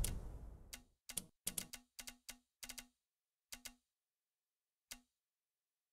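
Short menu clicks tick one after another.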